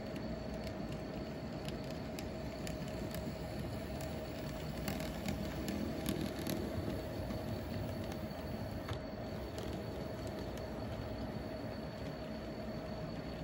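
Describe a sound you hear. A model train rumbles along the tracks.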